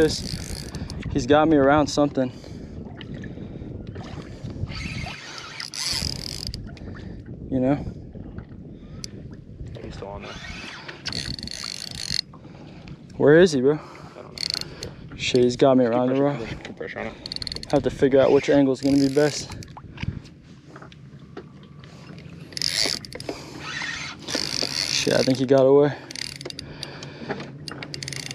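A fishing reel clicks and whirs as its handle is cranked.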